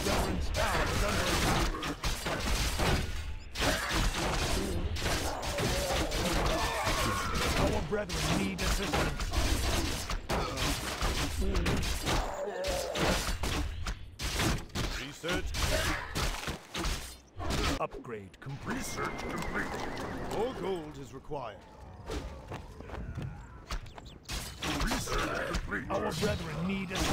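Swords and weapons clash in a noisy battle.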